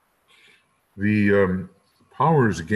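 An elderly man speaks into a microphone, heard over a call.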